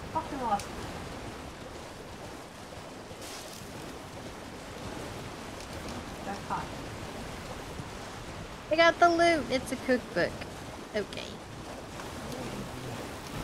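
A horse's hooves splash through shallow water.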